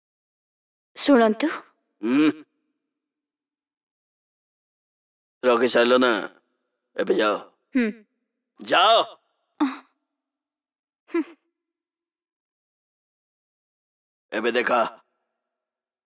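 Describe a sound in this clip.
A man speaks tensely, close by, in short bursts.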